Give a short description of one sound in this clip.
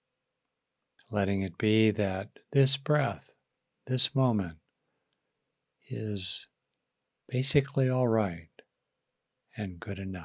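A middle-aged man speaks calmly and closely into a microphone, in short phrases with pauses.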